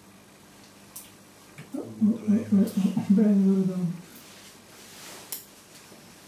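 Metal surgical instruments click softly.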